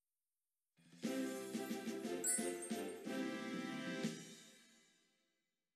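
A short cheerful victory jingle plays.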